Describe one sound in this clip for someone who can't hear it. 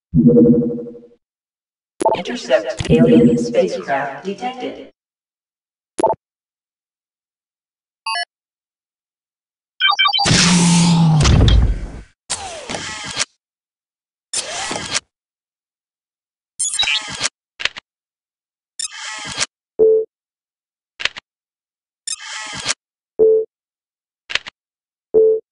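Short electronic interface sounds beep and chirp as menu items are chosen.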